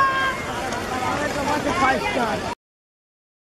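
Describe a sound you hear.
A crowd shouts and cheers outdoors.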